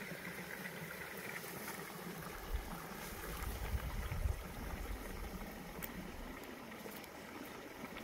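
Wind buffets outdoors, rustling tall grass.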